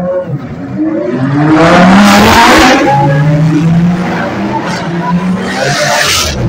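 Race car engines idle and rev loudly nearby.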